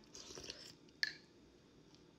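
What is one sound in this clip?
A metal spoon clinks against a ceramic bowl.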